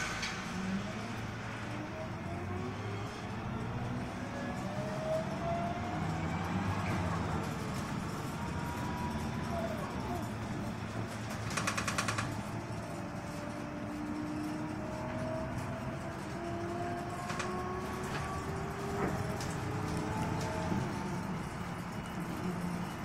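Bus tyres rumble on the road.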